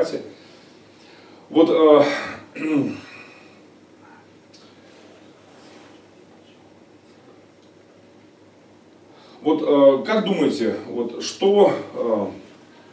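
A middle-aged man speaks with animation through a microphone, with long pauses.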